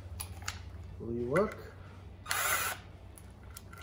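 A cordless drill whirs in short bursts, rising in pitch.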